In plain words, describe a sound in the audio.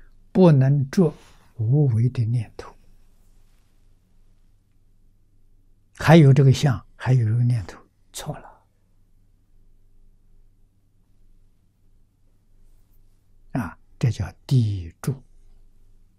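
An elderly man speaks calmly into a close microphone, in short phrases with long pauses.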